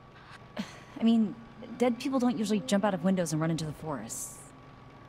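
A young woman speaks wryly.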